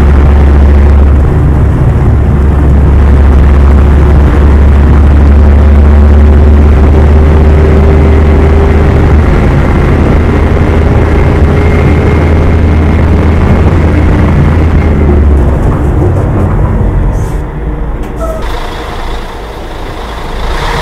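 A heavy bus engine rumbles steadily as it drives along a rough road.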